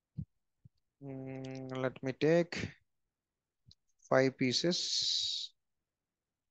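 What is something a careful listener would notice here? A man speaks calmly and close to a microphone, in short phrases.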